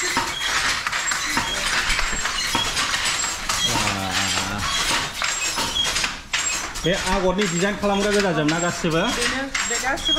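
A loom clatters and knocks in a steady, fast rhythm.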